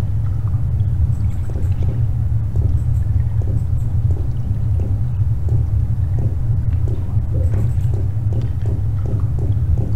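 Footsteps tap steadily on hard pavement.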